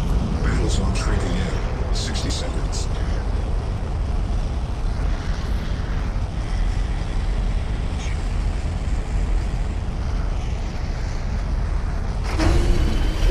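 An aircraft engine drones inside a cabin.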